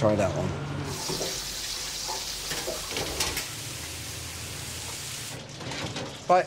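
Hot oil sizzles loudly as food fries.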